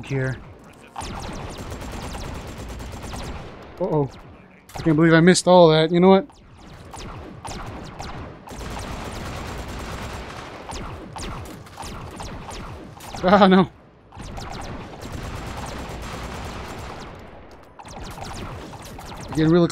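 An automatic gun fires rapid bursts.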